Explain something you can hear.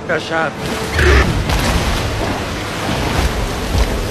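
A large mass bursts out of the sea with a deep rumbling splash.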